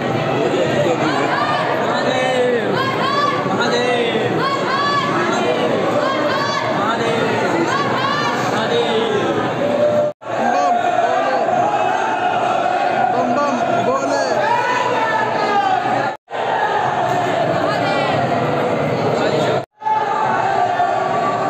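A large crowd chatters loudly all around in an echoing hall.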